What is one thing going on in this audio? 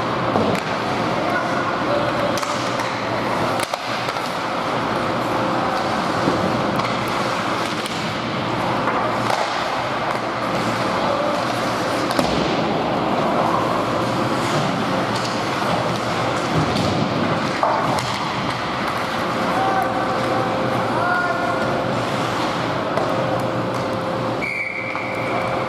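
Hockey sticks clack against a puck and the ice, echoing.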